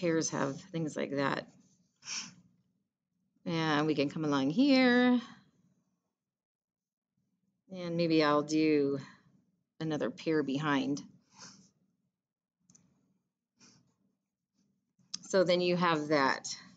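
A woman talks calmly and clearly into a microphone, in short phrases with pauses.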